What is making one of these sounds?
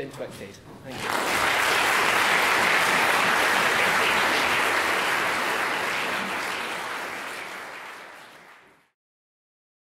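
An audience applauds loudly in an echoing hall, then the applause fades.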